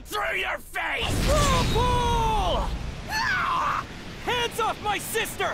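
A whirlwind roars and rushes past.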